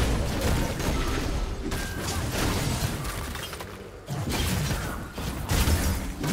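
Game spell effects whoosh and burst in quick succession.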